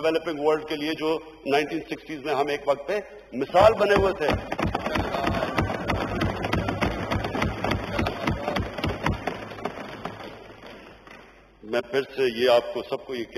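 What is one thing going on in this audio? A man speaks forcefully into a microphone in a large hall.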